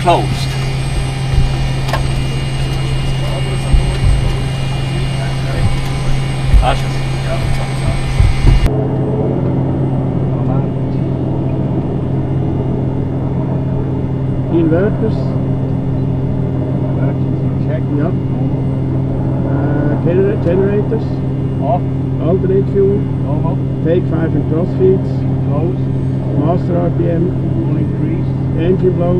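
Aircraft engines drone steadily with a low hum.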